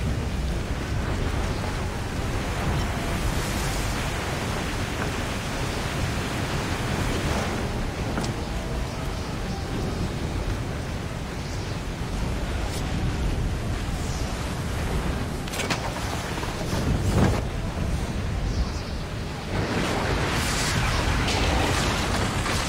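Heavy waves crash and surge.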